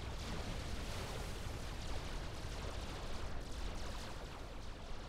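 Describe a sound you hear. Gunfire and explosions crackle and boom in a battle.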